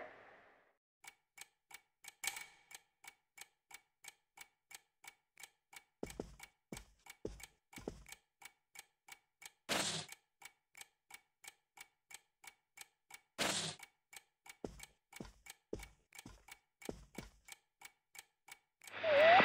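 Footsteps tap steadily across a floor.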